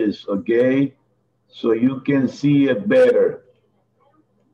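A man speaks clearly through an online call, as if teaching.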